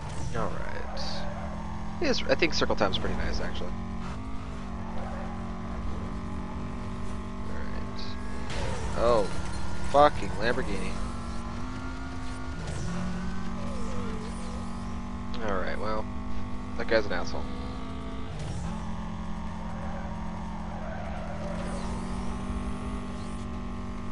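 A racing car engine roars steadily at high revs.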